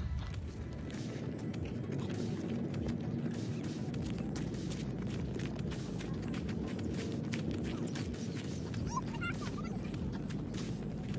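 Small footsteps crunch on dry grass and dirt.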